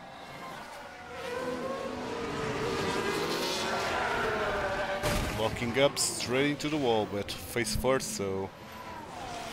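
Racing car engines roar past, rising and falling in pitch.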